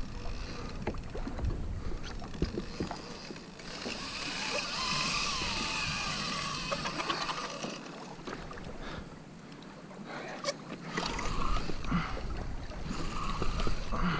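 Water laps against a small boat.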